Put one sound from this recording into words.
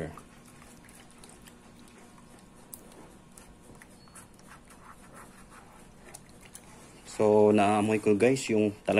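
A spoon stirs liquid in a plastic bowl, clinking softly.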